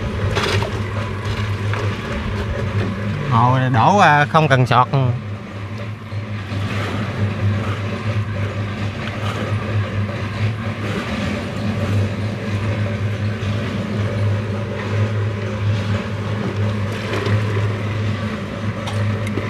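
Wet concrete slides and splatters from a bucket.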